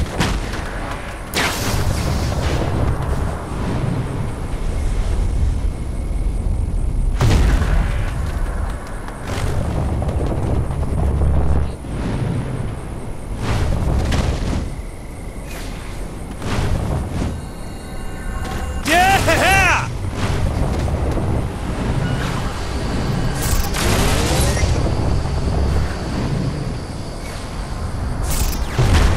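Heavy footsteps pound quickly across the ground.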